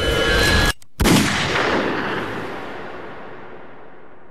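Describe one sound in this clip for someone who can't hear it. A pistol shot bangs loudly and echoes away.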